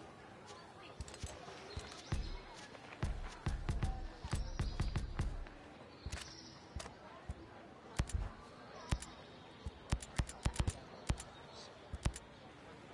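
Game menu selections click sharply, now and then in quick bursts.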